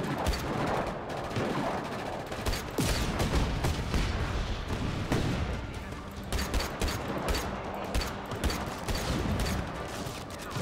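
A pistol fires repeated sharp shots.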